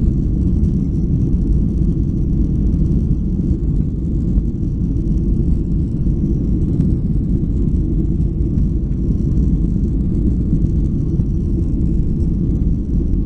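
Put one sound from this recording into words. Jet engines roar steadily, heard from inside an airplane cabin.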